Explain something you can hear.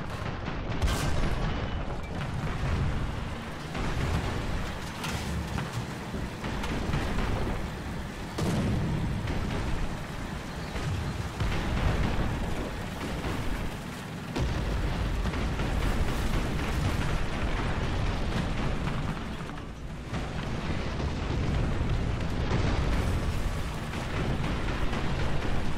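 A tracked tank's engine rumbles as the tank drives.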